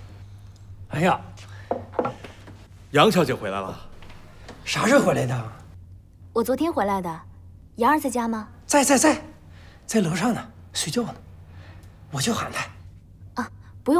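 A middle-aged man speaks cheerfully nearby.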